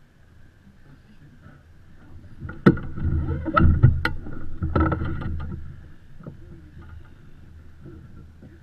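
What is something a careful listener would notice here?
Water splashes against a sailboat's hull.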